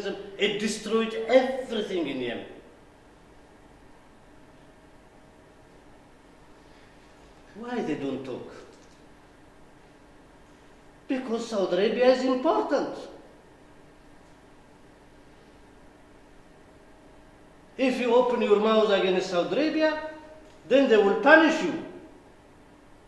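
A middle-aged man speaks calmly into a microphone in short bursts with pauses.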